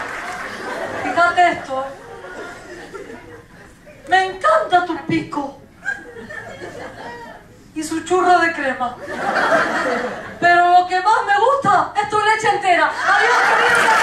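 A woman sings with animation on a stage.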